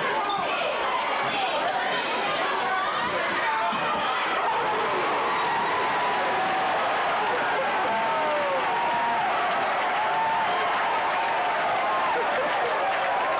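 A large crowd cheers and shouts loudly in an echoing gym.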